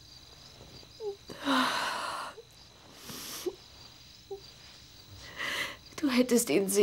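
A woman breathes heavily and gasps up close.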